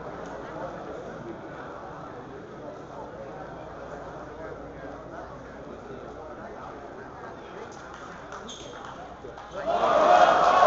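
A crowd murmurs quietly in a large hall.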